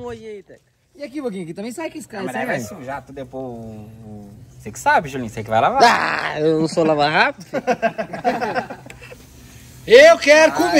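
A man talks and laughs nearby, outdoors.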